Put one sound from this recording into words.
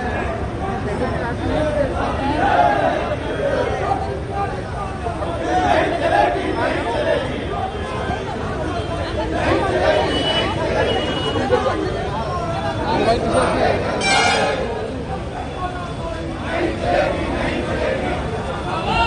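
A crowd of men and women talks and shouts over one another outdoors.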